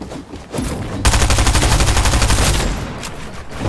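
A gun fires a rapid burst of loud shots.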